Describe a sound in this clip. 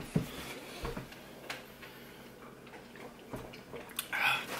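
A man gulps a drink from a can.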